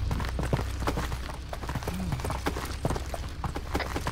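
Footsteps crunch on dirt as several people run.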